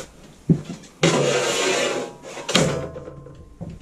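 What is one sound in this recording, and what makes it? A heavy steel plate scrapes and clangs as it is slid into place.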